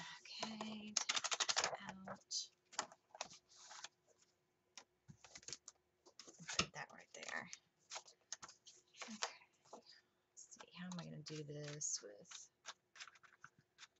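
Planner pages snap loudly off and onto plastic binder rings.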